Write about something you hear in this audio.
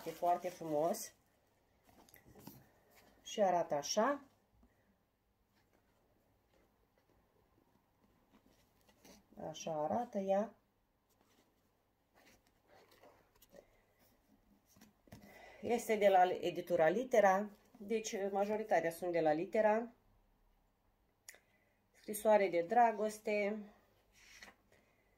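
Pages of a book rustle as they are handled.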